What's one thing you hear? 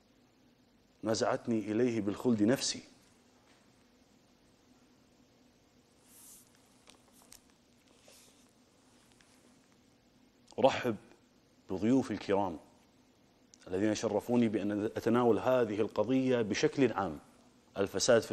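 A man speaks with emphasis into a close microphone, pausing between phrases.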